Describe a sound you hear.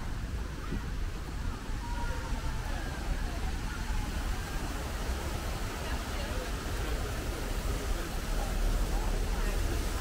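Voices of a crowd chatter nearby outdoors.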